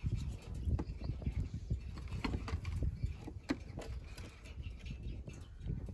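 A plastic bottle knocks against a wooden table.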